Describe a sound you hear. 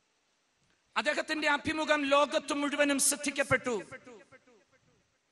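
A man speaks with emotion into a microphone, his voice echoing.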